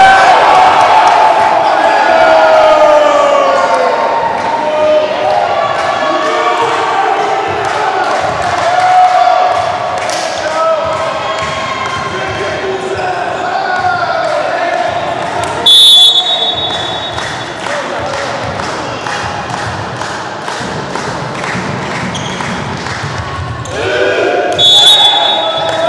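A crowd cheers and chants loudly in an echoing hall.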